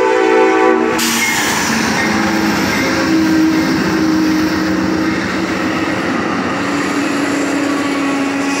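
A passenger train rumbles and clatters past close by.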